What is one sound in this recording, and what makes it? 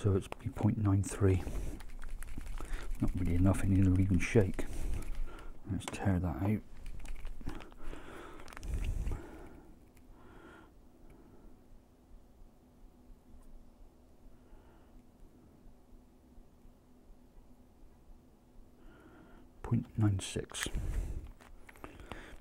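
Small plastic items click and rustle in a man's hands.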